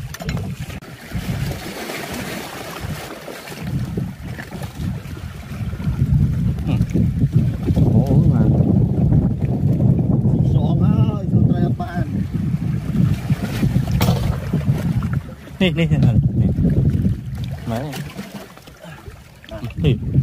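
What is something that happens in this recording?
Feet in sandals splash through shallow water.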